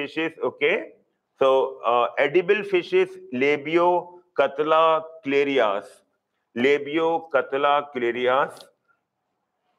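A man explains with animation, close to a microphone.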